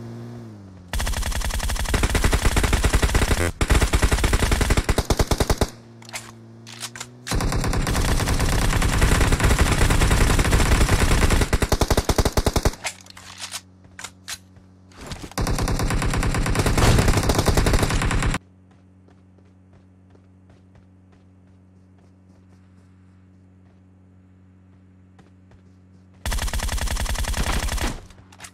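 An automatic rifle fires in long, rapid bursts.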